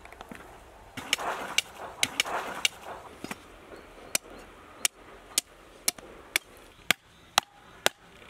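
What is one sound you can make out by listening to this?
A cleaver chops sharply through meat and bone on a wooden block.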